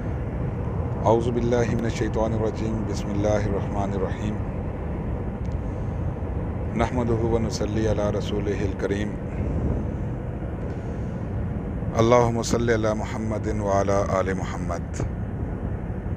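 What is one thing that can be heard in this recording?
A middle-aged man speaks earnestly and close by through a phone microphone, in bursts with pauses.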